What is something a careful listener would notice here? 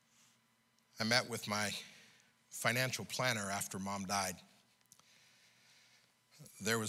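An older man speaks through a microphone in bursts, with pauses between them.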